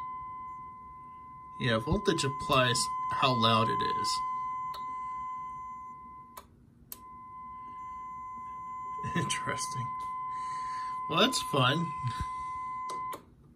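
A small loudspeaker gives out a steady, high-pitched tone that breaks off briefly and then returns.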